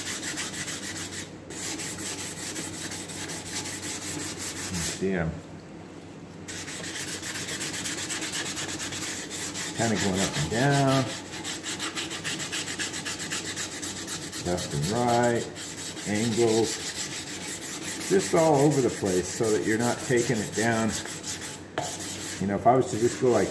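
A stiff brush scrubs rapidly against a hard plastic surface.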